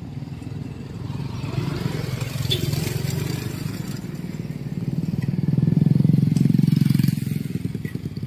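A motorcycle rides off with its engine revving.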